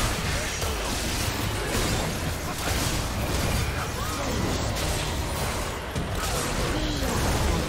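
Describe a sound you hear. Video game spell effects crackle and boom in a busy fight.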